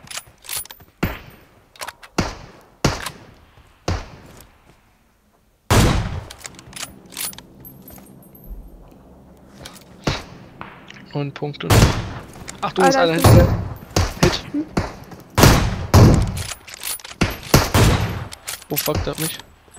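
Rifle shots crack sharply, one after another.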